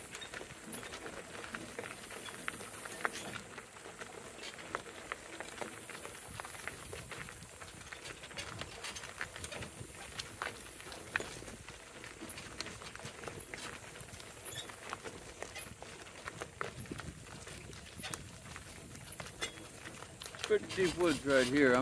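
Cart wheels crunch over gravel.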